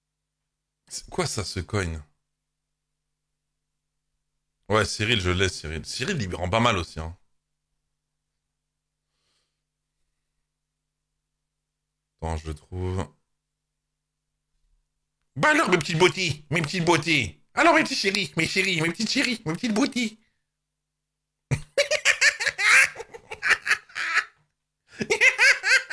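A man talks with animation into a microphone, in bursts with long pauses.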